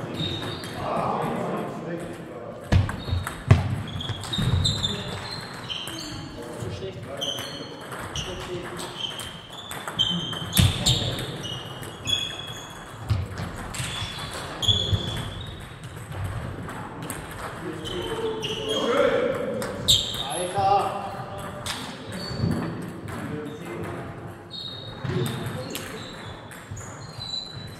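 Table tennis balls click sharply against paddles and tables, over and over, in a large echoing hall.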